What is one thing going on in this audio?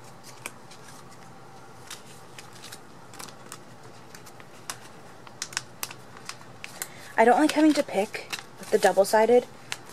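Pages of a ring binder flip over.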